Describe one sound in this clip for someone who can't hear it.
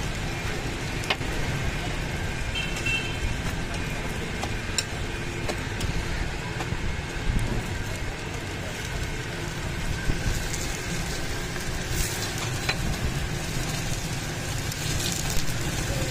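Flatbreads sizzle steadily on a hot griddle.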